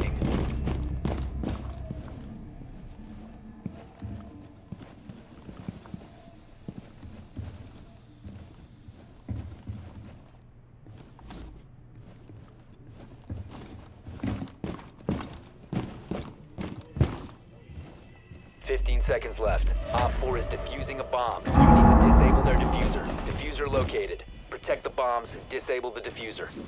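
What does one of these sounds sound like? Footsteps thud steadily across a hard floor and up stairs.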